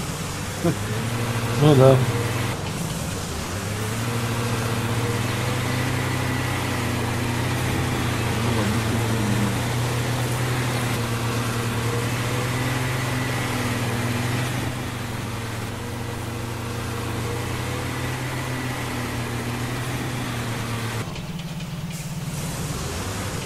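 Truck tyres crunch over rough ground.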